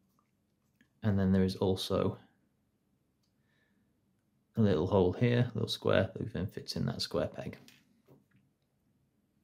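Small plastic parts click and snap together.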